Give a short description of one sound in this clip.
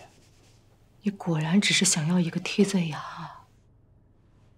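A young woman speaks with emotion nearby.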